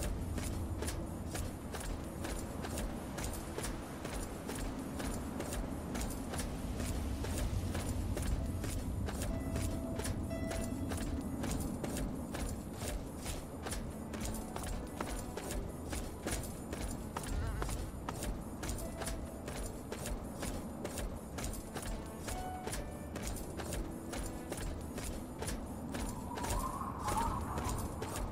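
Footsteps crunch steadily over rough gravel and rocks.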